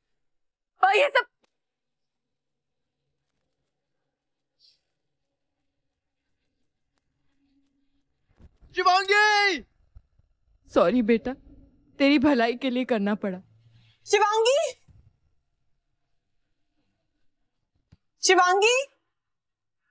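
A young woman cries out in distress, close by.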